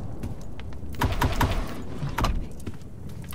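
A wooden drawer slides open with a rattle.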